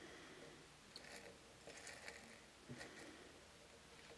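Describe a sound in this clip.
Small metal pieces clink and rattle softly in a glass dish.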